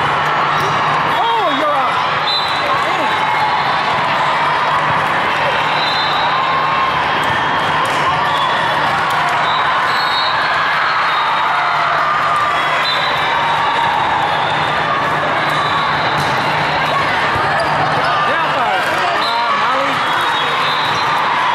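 Young women shout and cheer nearby.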